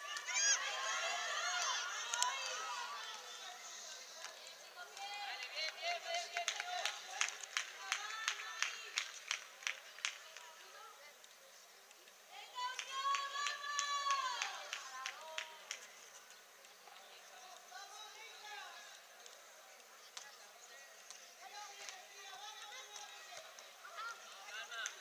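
Young children shout and call out across an outdoor sports field.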